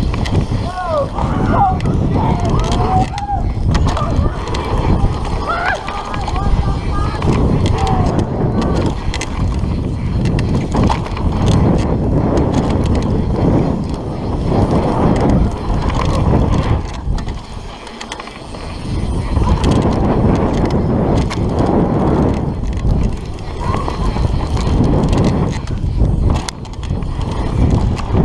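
Wind rushes past a fast-moving rider.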